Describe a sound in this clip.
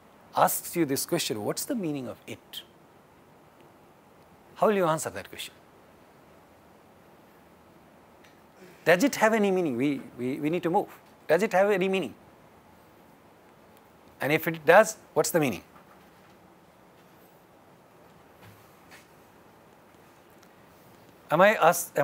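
A man speaks calmly through a clip-on microphone, in short bursts with pauses.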